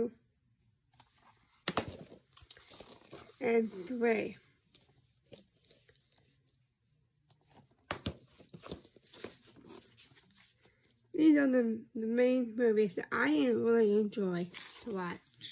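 Plastic cases clack as they are handled.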